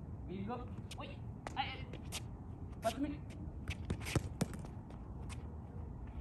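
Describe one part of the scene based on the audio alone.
A basketball bounces on concrete.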